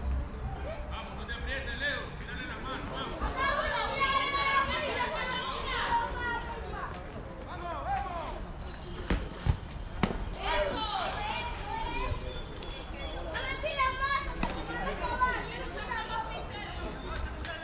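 Men talk and call out across an open field.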